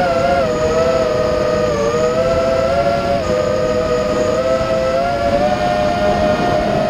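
A car engine hums steadily with a slightly wavering pitch.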